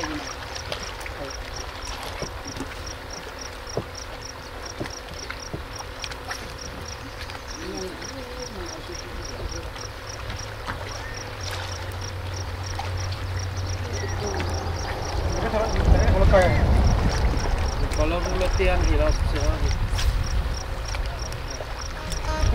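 Small waves lap gently against rocks at the shore.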